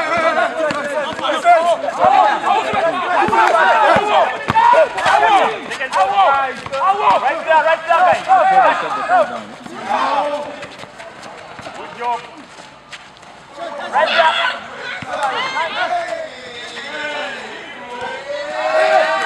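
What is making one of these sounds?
Young men shout and call out to each other.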